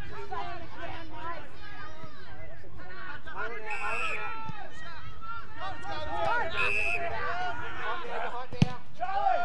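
A crowd of spectators chatters and calls out nearby, outdoors.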